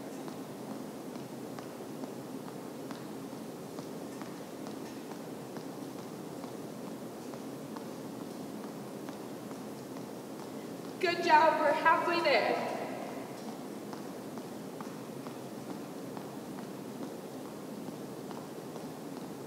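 Sneakers patter and squeak on a wooden floor in an echoing hall.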